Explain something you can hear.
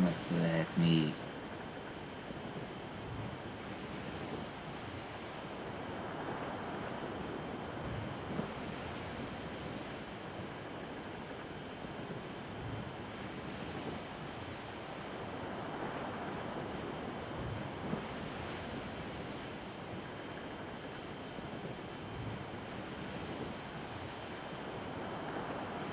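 Waves wash and splash against a sailing ship's hull as it ploughs through the sea.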